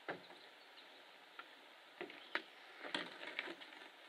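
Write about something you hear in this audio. A canoe bumps and scrapes onto rocks.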